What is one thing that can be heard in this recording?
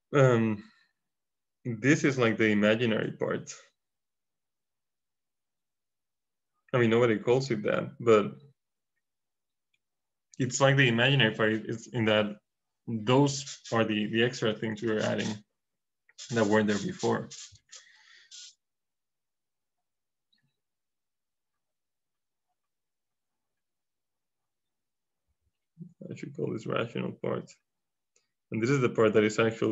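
A young man explains calmly in short bursts with pauses, heard close through a microphone.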